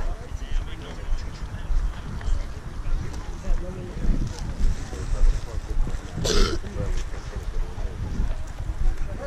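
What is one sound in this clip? A crowd of men and women chatters at a distance outdoors.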